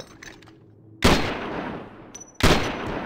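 Loud gunshots ring out and echo.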